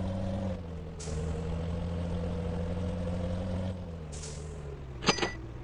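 Air brakes hiss sharply.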